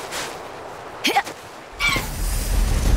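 A large winged creature lets out a sharp, gliding cry.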